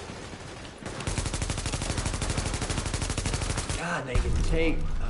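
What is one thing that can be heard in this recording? Rapid automatic gunfire rattles close by.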